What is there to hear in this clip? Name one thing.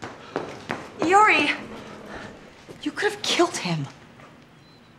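A woman speaks urgently nearby.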